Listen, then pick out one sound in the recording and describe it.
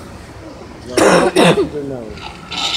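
A pig grunts and squeals loudly nearby.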